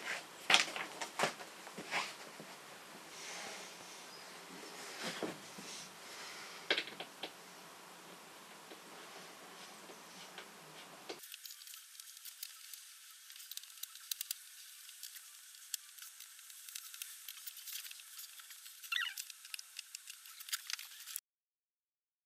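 Wooden panels knock and clatter as they are handled.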